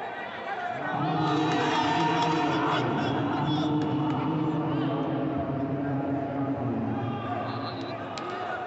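Spectators cheer loudly.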